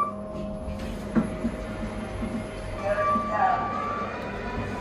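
Lift doors slide and thud shut.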